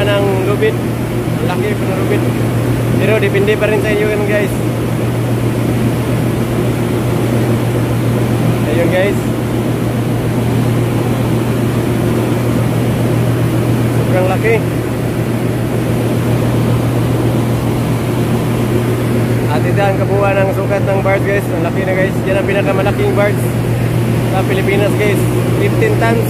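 A tugboat's diesel engine drones.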